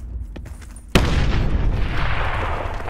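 Glass shatters loudly as a window is smashed.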